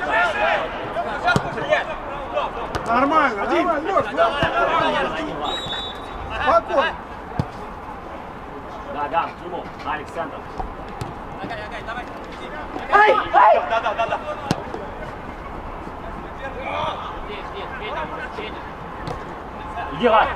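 A football thuds as players kick it outdoors.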